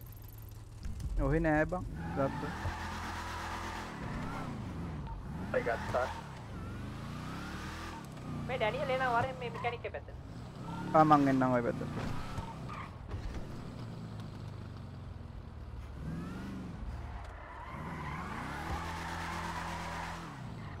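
A car engine revs up and down as it drives.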